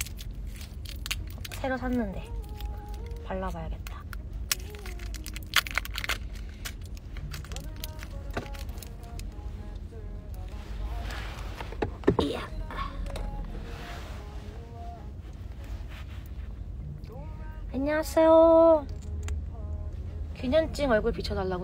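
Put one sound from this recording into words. A small plastic wrapper crinkles and clicks in someone's fingers.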